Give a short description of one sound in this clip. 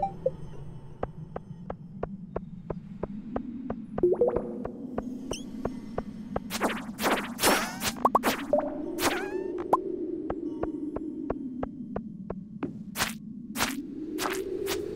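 Quick, light footsteps tap steadily on stone.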